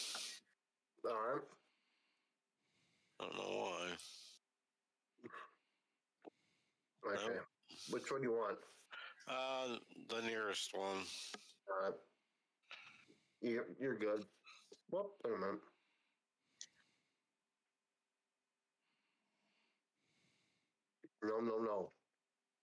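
A man talks with animation into a close microphone, with pauses.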